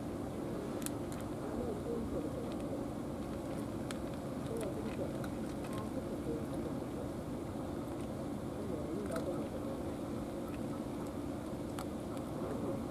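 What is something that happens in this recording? A cat crunches dry food up close.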